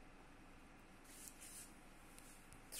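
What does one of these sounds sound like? Wax crayons slide and tap softly on a table.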